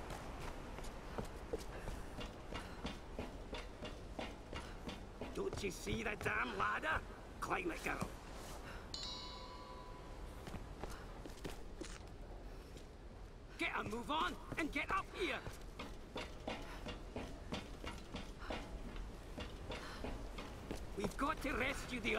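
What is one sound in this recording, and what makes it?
Footsteps thud on wooden planks and dirt.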